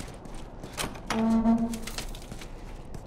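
A door swings open with a thud.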